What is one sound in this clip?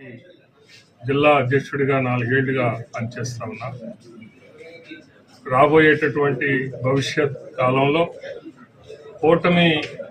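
An older man speaks steadily into a microphone.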